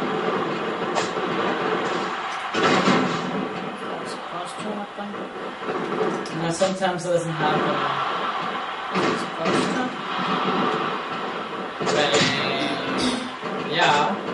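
Heavy thuds and slams ring out as wrestlers hit the mat.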